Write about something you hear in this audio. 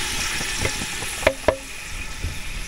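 A metal lid clanks against a pot.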